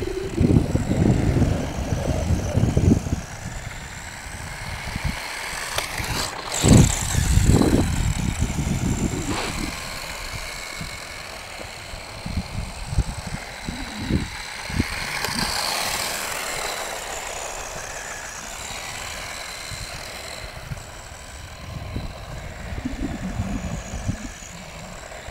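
A small aircraft's electric motor whines steadily overhead.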